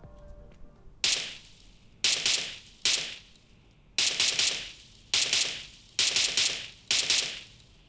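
Gunshots from a phone game fire in short bursts, each ringing out and fading.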